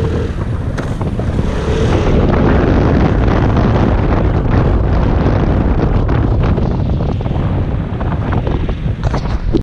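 Wind rushes past, buffeting the microphone.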